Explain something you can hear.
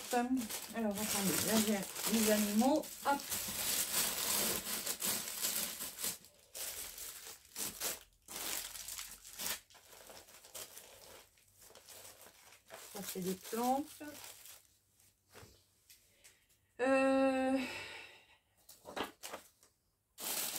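Plastic sleeves and paper rustle and crinkle.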